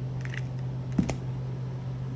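A plastic glue gun is set down on a table with a knock.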